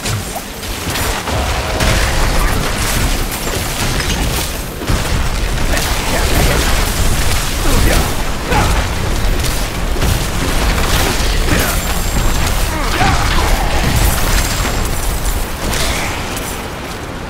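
A deep rumbling roar booms beneath the blasts.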